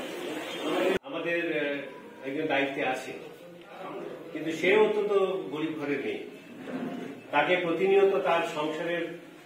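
An elderly man speaks calmly in a large, echoing hall.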